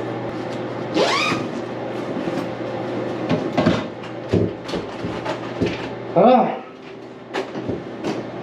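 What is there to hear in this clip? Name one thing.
A fabric bag rustles and its straps clatter as it is handled.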